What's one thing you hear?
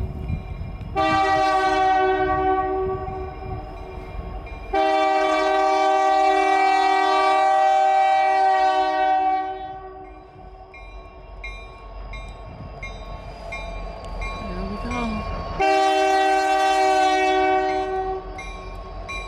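A train horn blows long, loud blasts.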